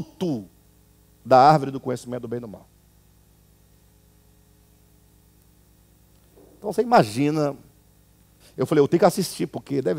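A man speaks calmly and close to a microphone, with pauses.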